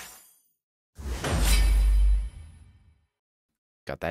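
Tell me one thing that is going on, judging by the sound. A deep, booming magical burst swells and fades.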